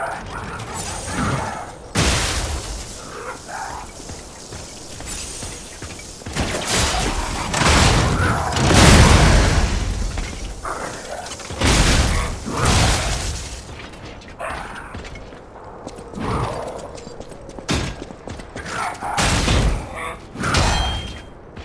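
Electricity crackles and zaps in sharp bursts.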